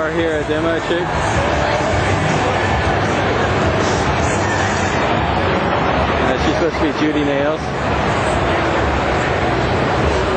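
Loud music plays through loudspeakers.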